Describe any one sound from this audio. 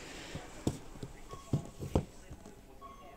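A hand taps on a cardboard box.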